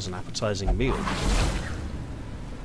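A trap springs with a sudden whoosh.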